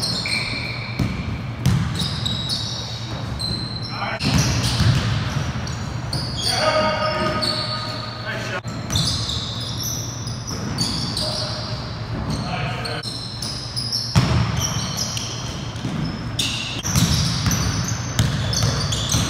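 Basketball shoes squeak sharply on a gym floor.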